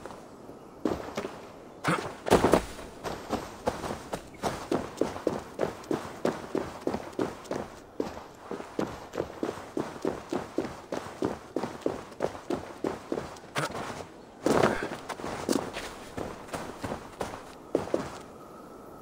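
A game character's footsteps crunch on rock.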